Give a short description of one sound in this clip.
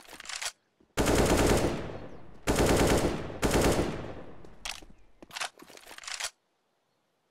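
A rifle fires rapid bursts of shots nearby.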